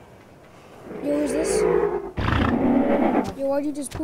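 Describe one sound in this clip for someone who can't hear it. A large creature lets out a loud, hooting call.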